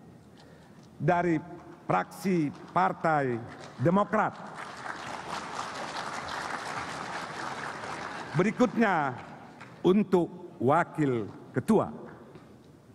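An elderly man speaks calmly through a microphone in a large hall.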